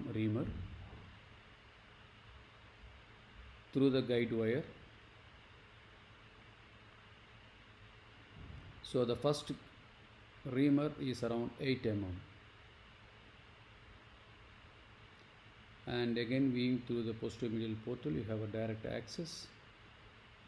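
A man narrates calmly through a microphone, in short bursts with pauses.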